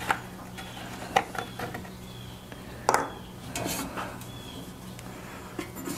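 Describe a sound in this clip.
A metal can knocks on a wooden bench.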